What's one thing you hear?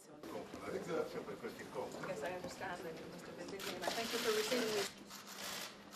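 Two men chat and laugh softly nearby.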